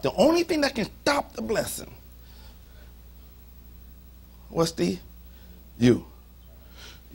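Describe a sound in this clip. A middle-aged man preaches forcefully into a microphone, in short bursts with pauses.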